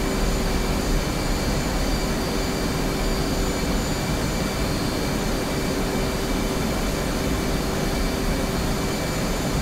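An electronic tone hums steadily.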